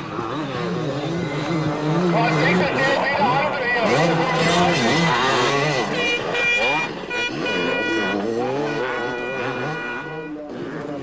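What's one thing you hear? A motorcycle engine revs hard and loud, rising and falling in pitch.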